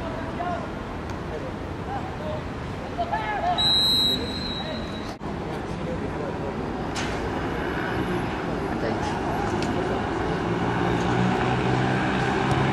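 Young men shout to each other across an open field in the distance.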